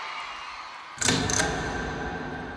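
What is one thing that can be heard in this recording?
A heavy hammer strikes metal with a loud bang.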